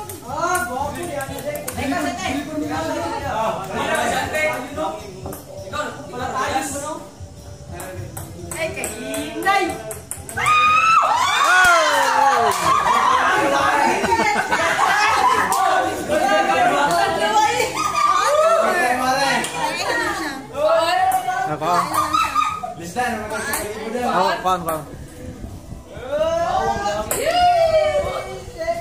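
A group of teenage boys talk and cheer excitedly close by.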